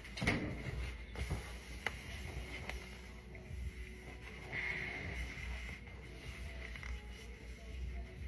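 Paper towels rustle and crinkle.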